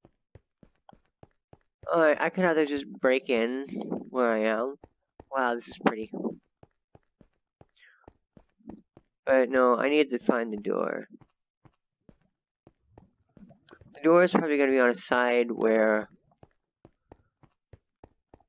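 Footsteps tread steadily on grass.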